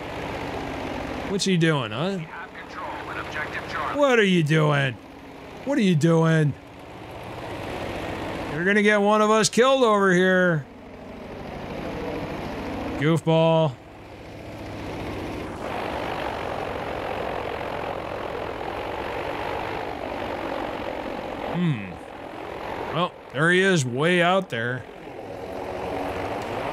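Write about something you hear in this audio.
A plane's engine drones steadily.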